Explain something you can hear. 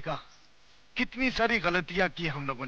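An elderly man speaks loudly and with animation nearby.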